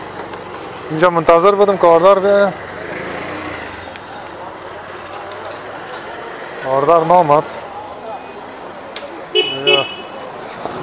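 Vehicle horns honk several times.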